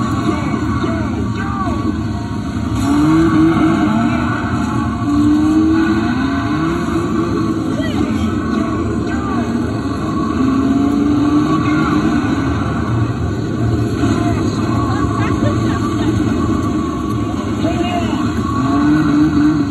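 Engine roars blare loudly from a racing arcade game's speakers.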